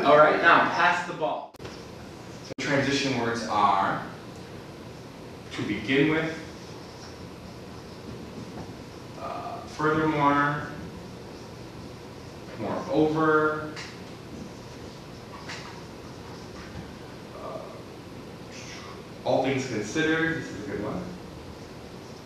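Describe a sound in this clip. A man speaks clearly in short phrases with pauses between them.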